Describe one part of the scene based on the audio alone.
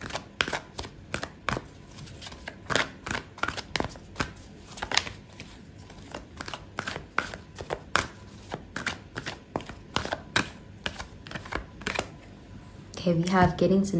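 Playing cards riffle and snap while being shuffled.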